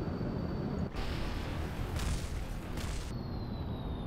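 A rocket explodes with a loud crackling blast.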